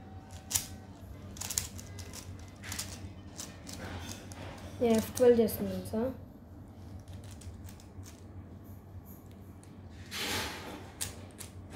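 A plastic puzzle cube clicks and rattles as its layers are turned quickly.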